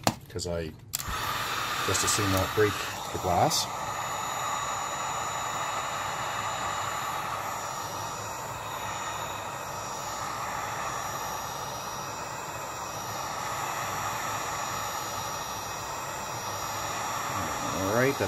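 A heat gun blows with a steady, loud rushing hiss.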